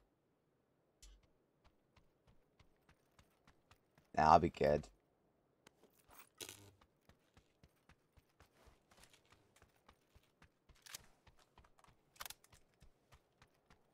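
Footsteps patter quickly and evenly.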